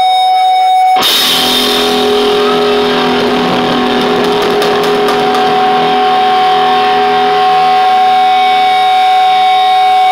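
An electric guitar chord rings out loudly through an amplifier and slowly fades.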